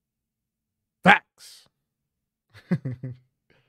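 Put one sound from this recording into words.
A man laughs.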